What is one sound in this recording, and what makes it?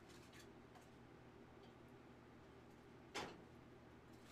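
A metal stove door creaks open and clanks.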